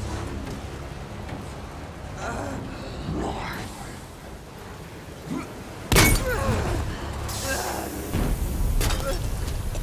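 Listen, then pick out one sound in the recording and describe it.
Water sprays and splashes hard.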